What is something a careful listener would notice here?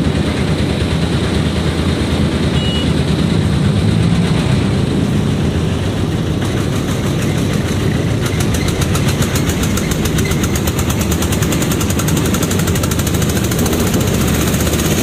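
Motorcycles pass by nearby.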